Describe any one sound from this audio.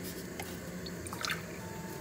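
Water pours into a metal pot.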